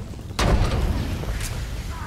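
A deep energy blast bursts with a heavy boom.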